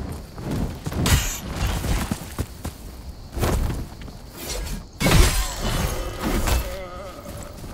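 Heavy blade strikes land with loud, fiery whooshes.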